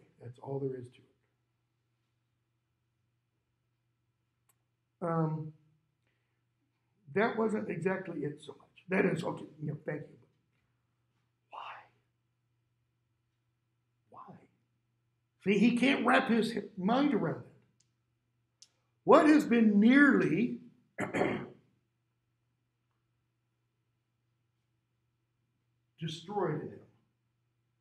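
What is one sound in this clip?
An older man speaks calmly into a close microphone, with long pauses.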